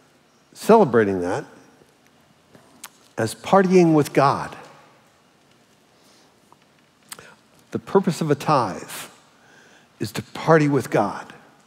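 An elderly man speaks with animation through a microphone, in a large room with slight echo.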